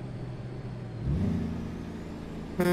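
A truck engine revs up briefly.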